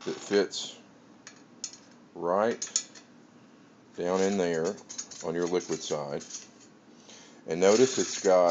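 A wrench clicks against a metal fitting on a keg.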